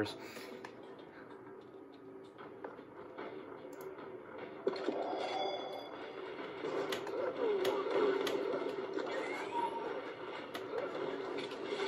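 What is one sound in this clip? Video game music plays through a small speaker.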